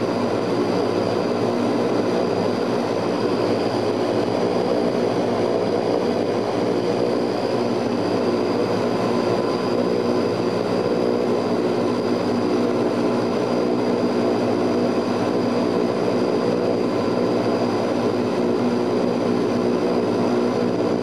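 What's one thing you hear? Propeller engines drone loudly and steadily, heard from inside an aircraft cabin.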